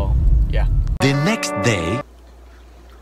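A cartoon jingle plays.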